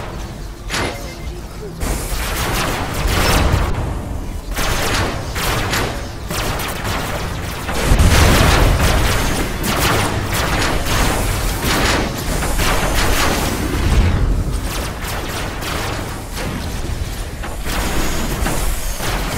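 Energy weapons fire in rapid bursts with crackling zaps.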